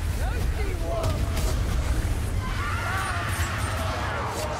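A fiery explosion roars and rumbles.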